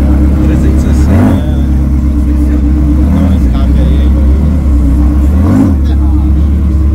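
A sports car engine revs up sharply in short bursts.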